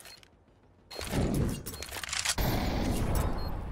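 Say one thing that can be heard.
A gunshot rings out.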